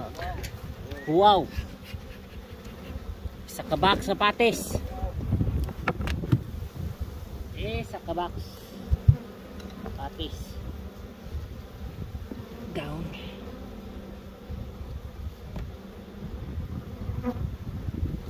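Many bees buzz steadily around open hives.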